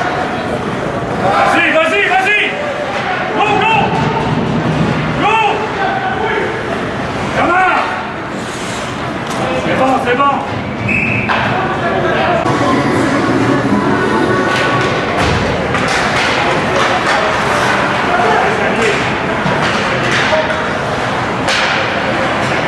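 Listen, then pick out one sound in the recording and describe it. Ice skates scrape and swish on the ice.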